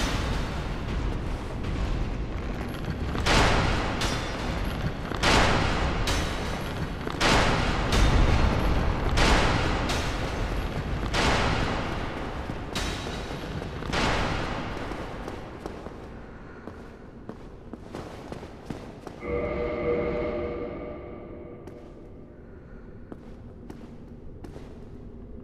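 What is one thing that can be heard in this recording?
Armored footsteps clatter on stone as a figure runs.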